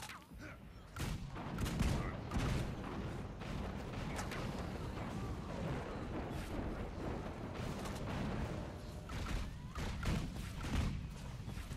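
Weapons clash and strike rapidly.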